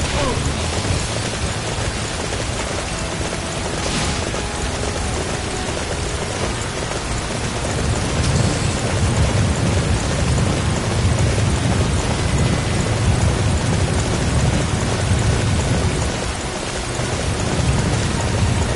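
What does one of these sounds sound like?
A horse's hooves pound steadily on the ground at a gallop.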